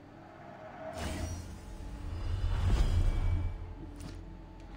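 A deep shimmering whoosh swells and fades.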